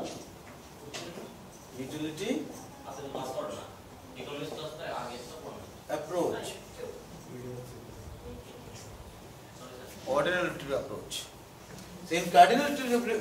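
A middle-aged man speaks calmly, as if explaining to a room.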